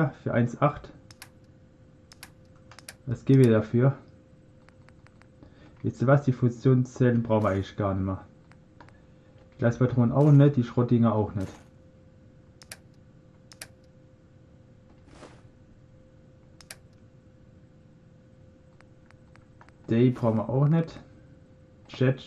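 Short soft clicks tick again and again as menu items change.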